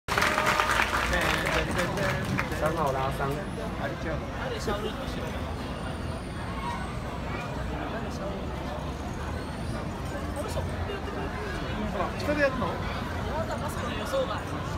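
A crowd of men and women chatter nearby outdoors.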